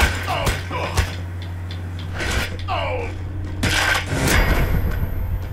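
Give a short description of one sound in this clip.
Heavy blows land in a scuffle.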